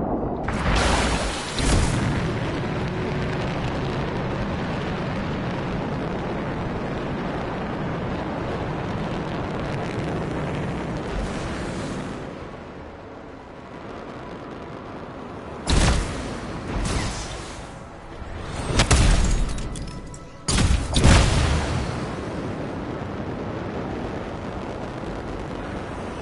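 Jet thrusters roar as an armored suit flies.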